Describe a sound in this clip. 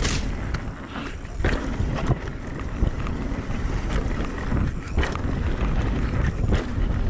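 Wind rumbles in the bike rider's ears.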